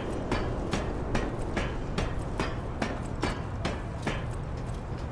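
Quick footsteps clang on a metal ladder.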